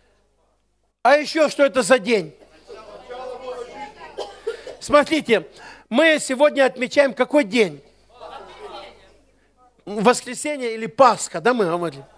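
A middle-aged man preaches with animation through a headset microphone, his voice rising to shouts.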